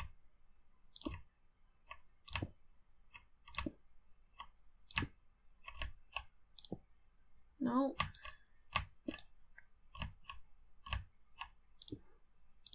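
Stone blocks are set down one after another with short, dull knocks.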